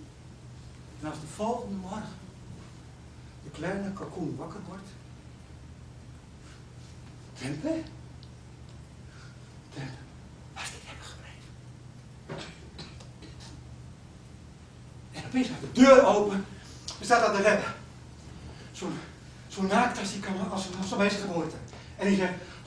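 A man speaks with animation, in a hall that echoes slightly.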